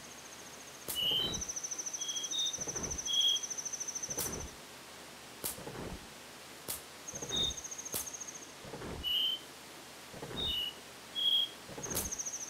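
Short, high game melody notes play in bursts.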